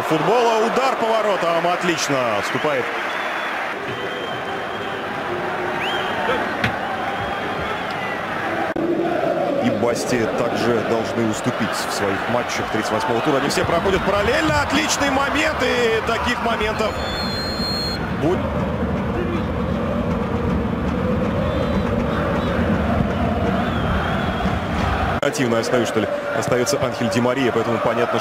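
A large crowd cheers and roars in a stadium.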